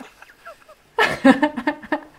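A young woman laughs loudly, close by.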